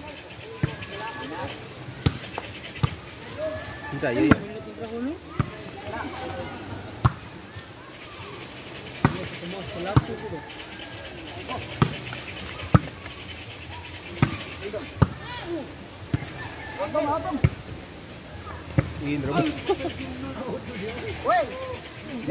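A ball is kicked with sharp thuds again and again.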